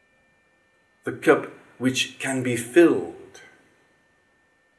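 An elderly man speaks briefly close by.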